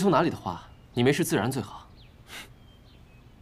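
A second young man answers in a low, calm voice.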